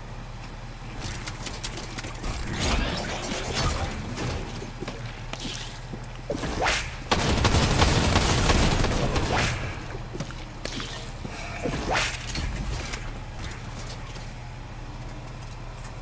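An older man talks with animation, close to a microphone.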